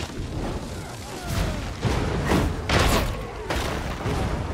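Guns fire in rapid bursts with loud echoing blasts.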